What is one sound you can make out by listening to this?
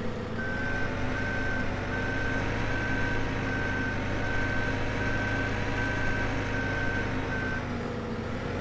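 A reversing alarm beeps at a steady pace, then stops.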